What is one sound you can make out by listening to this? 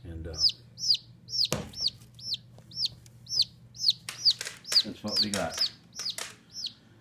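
Baby chicks cheep loudly and repeatedly, close by.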